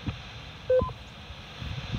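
A radio gives a short electronic beep.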